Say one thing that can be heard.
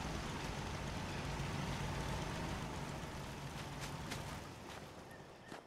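Dry leaves rustle as someone pushes through brush.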